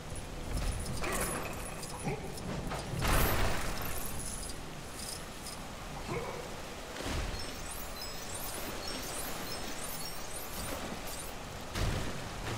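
Small coins jingle as they are collected.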